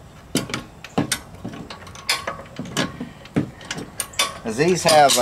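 A wrench clicks and scrapes against a metal fitting.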